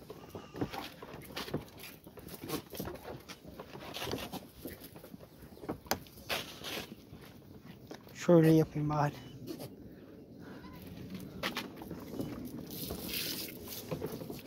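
Many goat hooves shuffle and patter on dirt.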